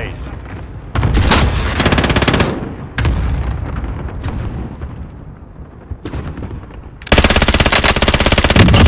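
A rifle fires rapid, loud bursts close by.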